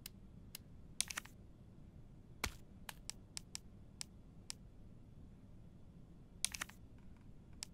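Soft chimes sound as an item is picked and confirmed.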